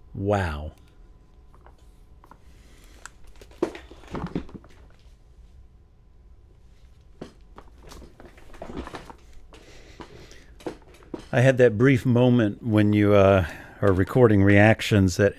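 A man speaks calmly and close to a microphone.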